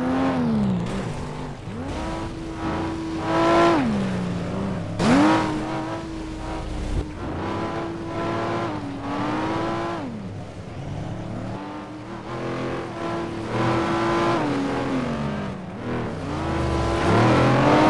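Tyres skid and hiss on snow and ice.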